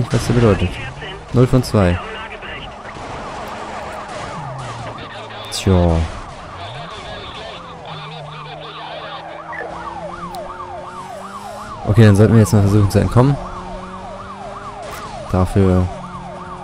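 Police sirens wail and yelp rapidly close by.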